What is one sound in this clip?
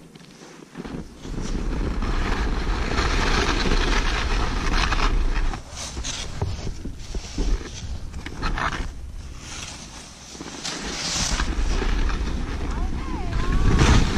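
Skis hiss and scrape through soft snow.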